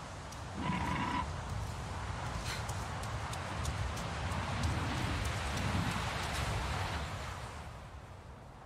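Footsteps rustle quickly through grass outdoors.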